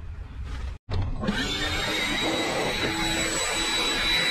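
A leaf blower engine runs with a loud, steady whine close by.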